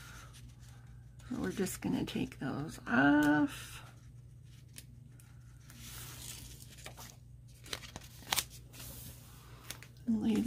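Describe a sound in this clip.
A sheet of paper rustles and crinkles as it is bent by hand.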